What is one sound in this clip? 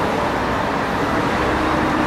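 A motorcycle engine buzzes by.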